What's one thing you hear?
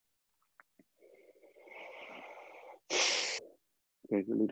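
A man breathes out slowly and deeply.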